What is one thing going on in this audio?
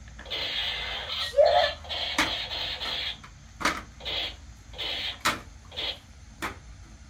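A toy gun gives off loud electronic buzzing bursts.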